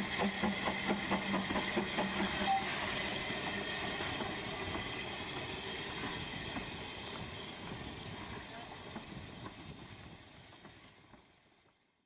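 A steam locomotive chuffs steadily as it pulls away and fades into the distance.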